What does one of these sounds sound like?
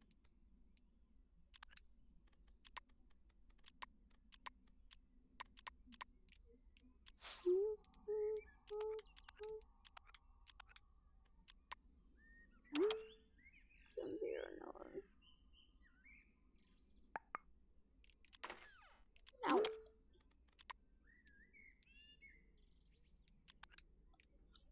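Game menu buttons click softly and repeatedly.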